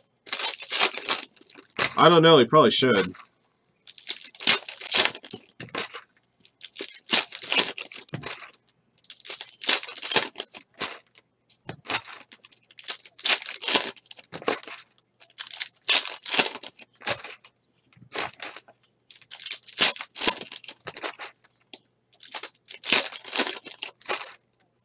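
Foil card packs crinkle and tear as hands rip them open.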